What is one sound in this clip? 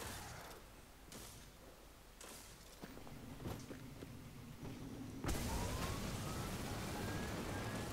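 A vehicle engine roars and whines.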